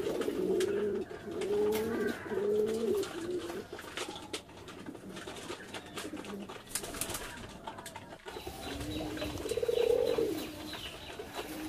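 Pigeons coo in low, throaty bursts.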